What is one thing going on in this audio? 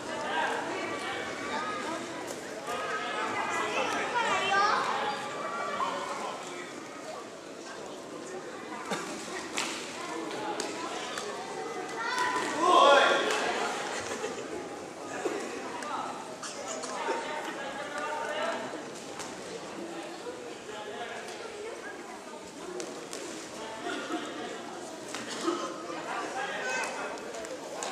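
A crowd murmurs and shouts in a large echoing hall.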